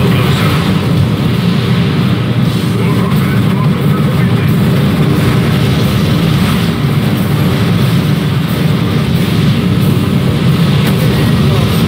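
Rockets whoosh as they fire.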